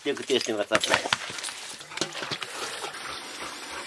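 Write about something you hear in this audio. Water splashes from a hose into a metal pot.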